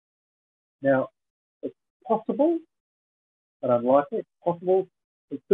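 An elderly man speaks calmly in short phrases over an online call.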